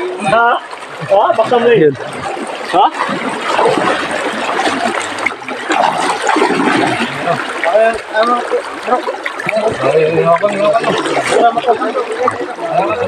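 A shallow river flows and splashes.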